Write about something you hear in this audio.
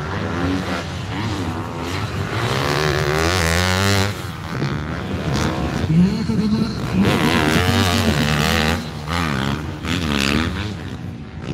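A motocross dirt bike revs hard through the gears, its engine rising and falling.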